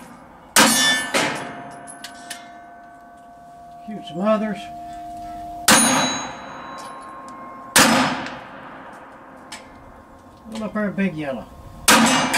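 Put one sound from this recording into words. Pistol shots crack loudly outdoors, one at a time, with a short echo.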